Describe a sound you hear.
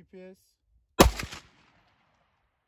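A pistol fires a single loud shot that echoes outdoors.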